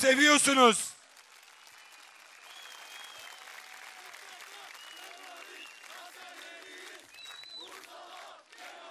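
A large outdoor crowd cheers and claps.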